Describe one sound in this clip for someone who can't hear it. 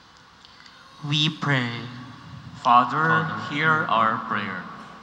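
A young man speaks into a microphone in a large echoing room.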